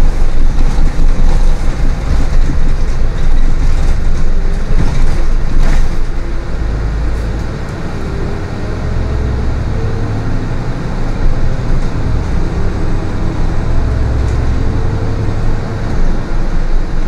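Tyres roll over a bumpy road and rattle the bus.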